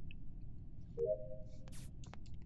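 A short electronic chime sounds.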